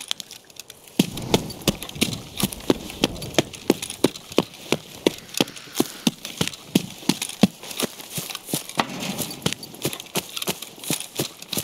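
Footsteps crunch steadily on gravel and grass.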